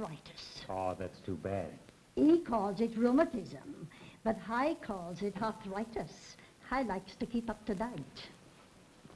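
An elderly woman speaks with animation.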